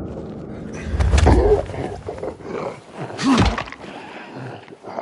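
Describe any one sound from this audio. A zombie snarls and growls close by.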